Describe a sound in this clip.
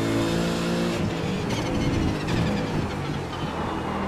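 A racing car engine drops in pitch as it brakes with quick downshifts.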